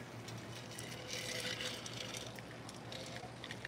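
A woman sips a drink.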